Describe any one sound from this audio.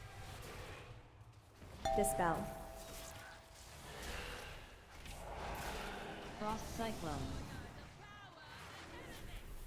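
Magic spells whoosh and chime in quick bursts.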